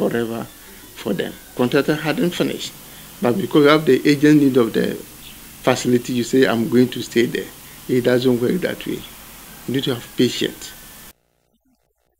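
A middle-aged man speaks calmly and close up.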